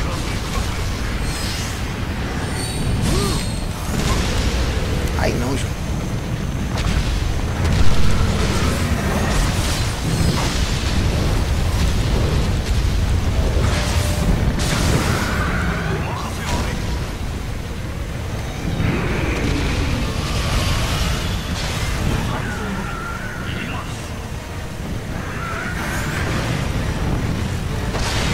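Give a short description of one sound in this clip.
Swords clash and strike with heavy metallic impacts.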